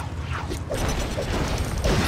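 A jetpack whooshes as a small figure takes off.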